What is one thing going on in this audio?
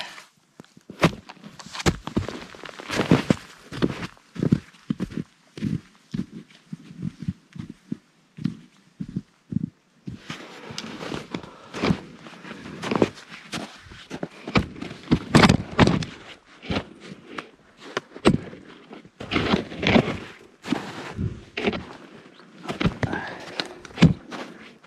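Boots crunch and squeak in deep snow, step after step.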